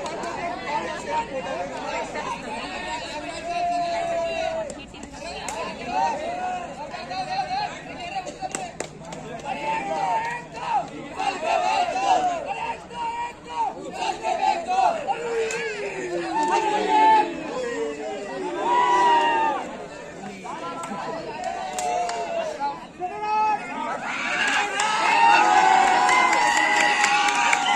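A large crowd outdoors shouts and cheers, growing louder near the end.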